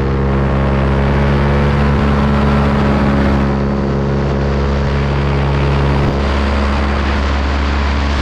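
A motor drones steadily close by.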